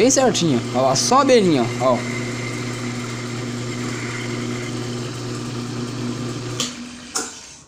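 A lathe motor hums steadily, then winds down and stops.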